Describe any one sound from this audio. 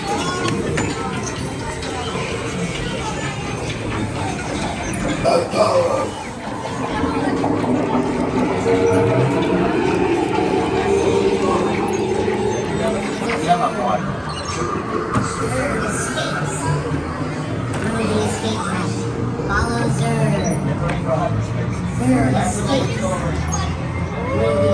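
Music and electronic effects play loudly in an echoing space.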